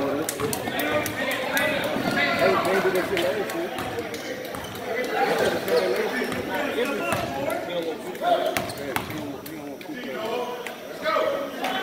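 Young men shout and call out to each other across the gym.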